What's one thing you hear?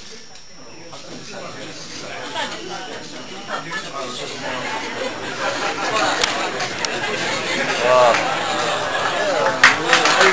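A crowd of men chatter and murmur nearby in a room.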